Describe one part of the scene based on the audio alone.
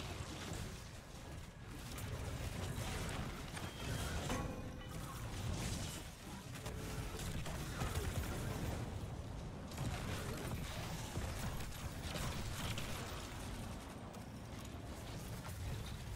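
Gunfire rattles in bursts.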